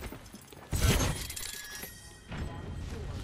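A sharp electric blast crackles loudly and fades.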